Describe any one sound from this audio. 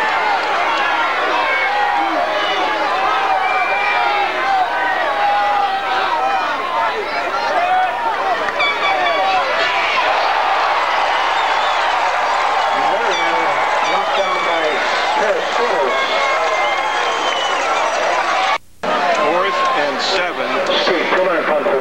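A large crowd of spectators chatters and calls out outdoors.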